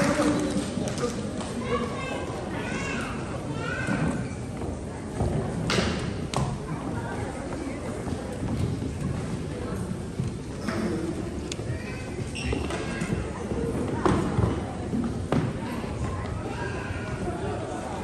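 Men and women chatter nearby in a lively crowd.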